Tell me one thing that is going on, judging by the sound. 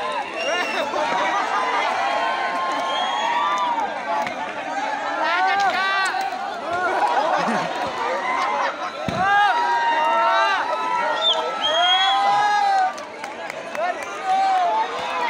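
A big bonfire roars and crackles.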